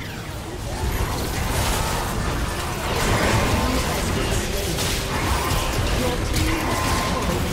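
Magic blasts whoosh and crackle in a busy video game battle.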